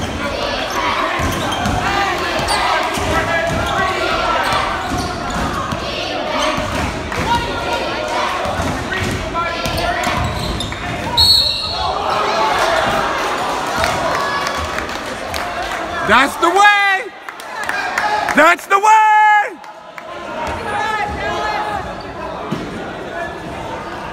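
Young male basketball players shout across an echoing gym.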